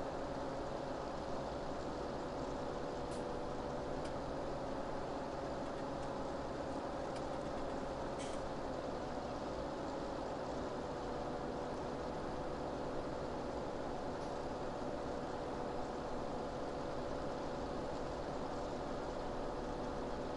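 A hay rake's rotors whir and rattle behind a tractor.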